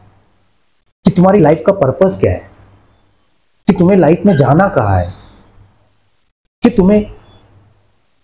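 A young man speaks with emphasis, close to a clip-on microphone.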